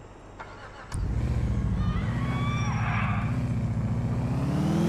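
A car engine starts and revs loudly.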